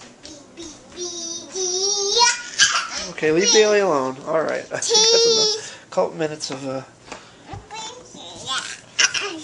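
A small child squeals and babbles loudly close by.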